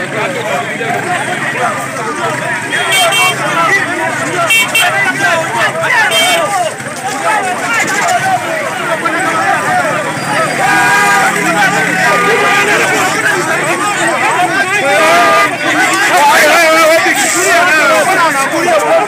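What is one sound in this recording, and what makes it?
A crowd of men and women shouts and talks excitedly close by, outdoors.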